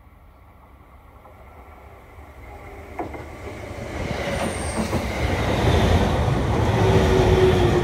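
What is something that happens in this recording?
A train approaches and rushes past close by, growing louder.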